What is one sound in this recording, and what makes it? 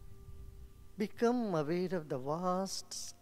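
A man speaks slowly and softly into a microphone nearby.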